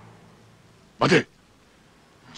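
A shotgun is pumped with a sharp metallic click.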